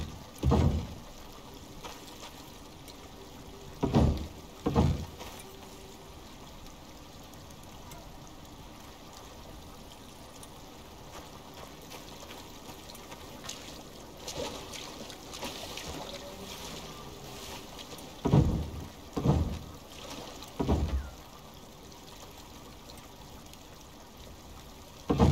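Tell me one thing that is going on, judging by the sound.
Heavy wooden logs thud into place, one at a time.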